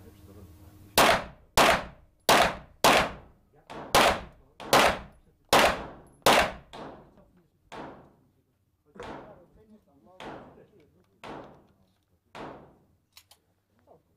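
Pistol shots ring out in quick succession in an echoing indoor space.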